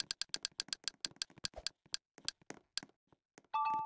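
Rapid clicking ticks slow down and stop.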